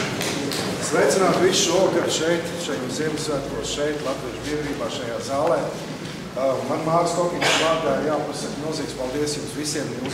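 An elderly man speaks to an audience.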